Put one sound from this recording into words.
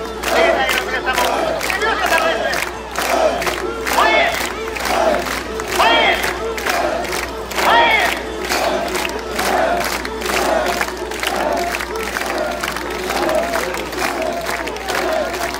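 Men shout out in chorus, over and over.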